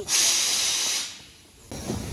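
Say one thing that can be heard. A steam locomotive hisses loudly.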